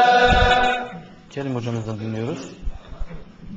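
A man chants in a long melodic voice through a microphone.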